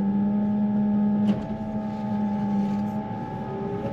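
Hydraulics whine as the loader's arm moves.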